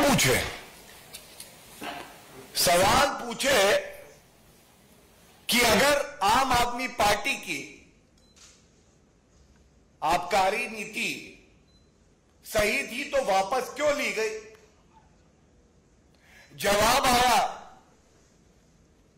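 A middle-aged man speaks firmly into a microphone, in short bursts with pauses.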